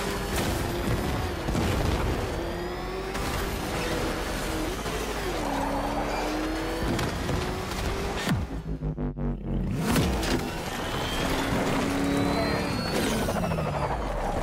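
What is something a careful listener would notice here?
Loud explosions boom and debris clatters.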